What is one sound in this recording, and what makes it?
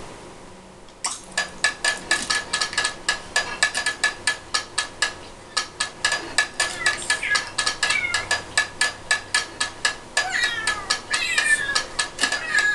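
Lively game music with a quick, tapping beat plays through a television speaker.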